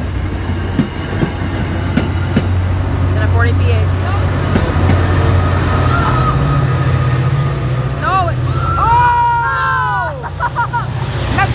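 A diesel locomotive engine drones loudly nearby.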